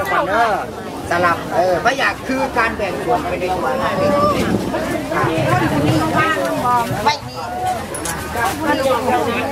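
Several adults talk at once nearby, outdoors.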